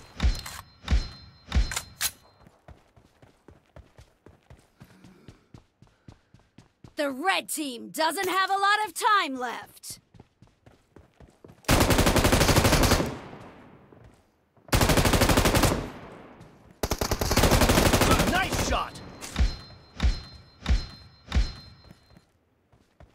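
Rapid bursts of gunfire crack loudly.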